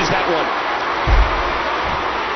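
A body slams heavily onto a wrestling mat with a deep thud.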